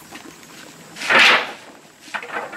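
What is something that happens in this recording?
A bundle of sticks clatters as it is set down.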